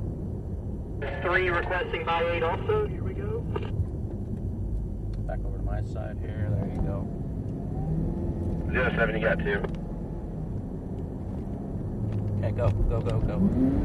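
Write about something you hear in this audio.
A man talks with animation close by inside a car.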